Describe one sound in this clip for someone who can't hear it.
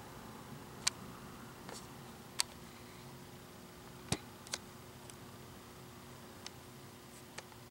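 Plastic laptop parts click and tap sharply now and then.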